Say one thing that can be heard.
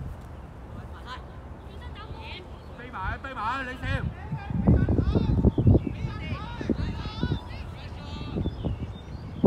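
Young players shout to each other in the distance outdoors.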